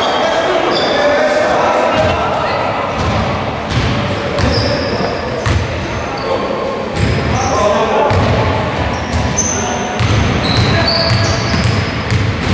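Men call out to each other across the court.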